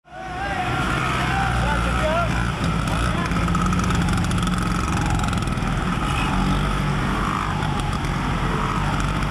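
Many scooter engines putter and drone as scooters ride past in a large echoing hall.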